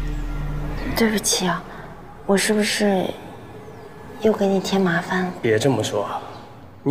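A young woman speaks softly and close by.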